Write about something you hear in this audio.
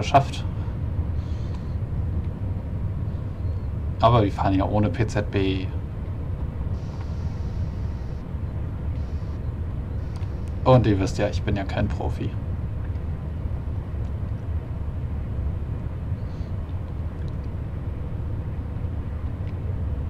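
An electric multiple-unit train rumbles along the rails at speed.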